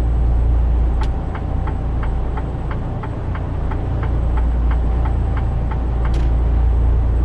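A turn indicator ticks rapidly inside the cab.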